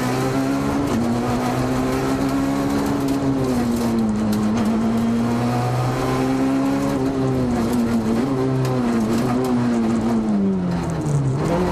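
A rally car engine roars loudly, its pitch rising and falling as the driver shifts gears.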